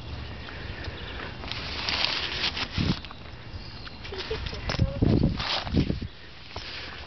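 Tent fabric rustles and crinkles as a hand pushes it aside.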